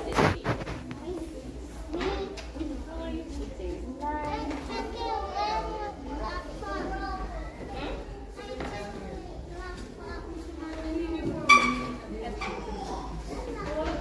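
A woman speaks to young children nearby.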